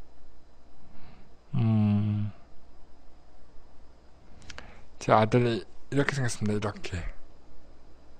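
A middle-aged man speaks calmly into a microphone, in short bursts.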